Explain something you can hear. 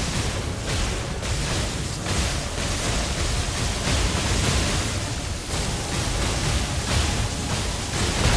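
Lightning cracks and rumbles.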